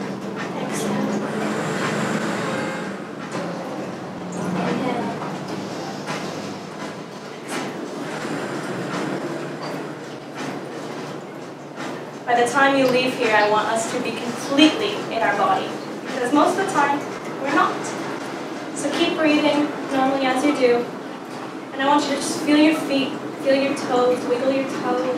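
A woman speaks calmly to a small group.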